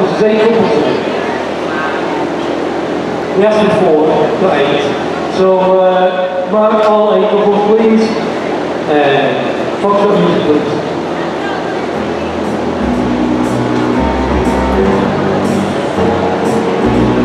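A crowd of spectators murmurs in the background.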